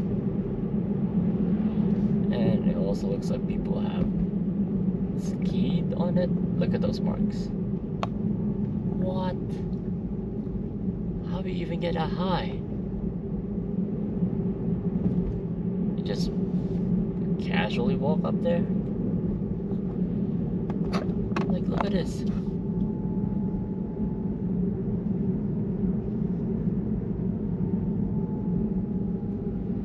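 Tyres roll with a steady roar on the road.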